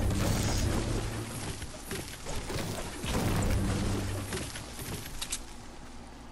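A pickaxe strikes wood with sharp chopping knocks.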